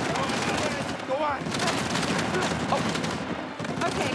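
An explosion bursts with debris crashing down.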